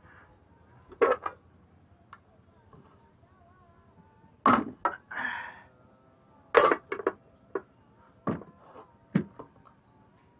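Metal pots and lids clank and knock.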